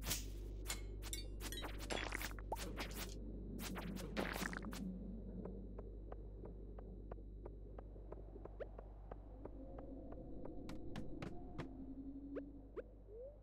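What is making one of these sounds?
Short game sound effects click and chime.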